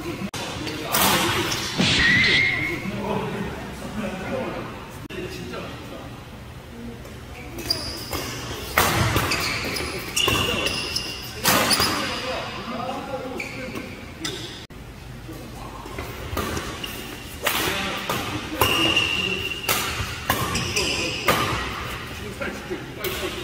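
Badminton rackets smack a shuttlecock back and forth in an echoing hall.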